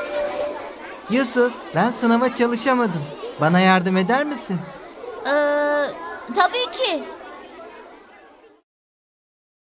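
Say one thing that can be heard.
A young boy speaks with animation, up close.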